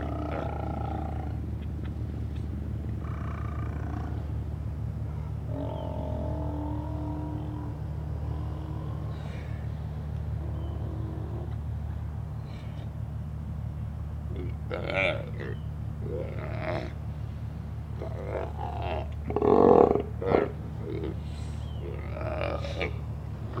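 Sea lions groan and bark nearby.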